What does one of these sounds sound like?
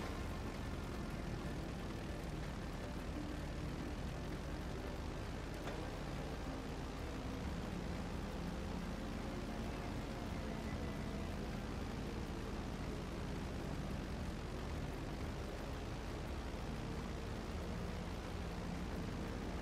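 Twin propeller engines drone steadily as a plane flies.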